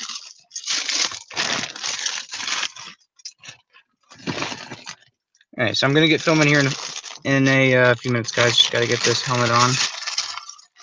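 A plastic bag of toy bricks crinkles and rustles in hand.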